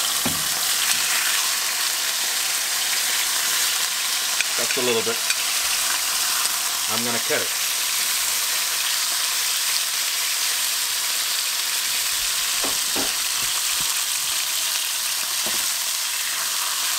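Metal tongs clink against a plate and pan.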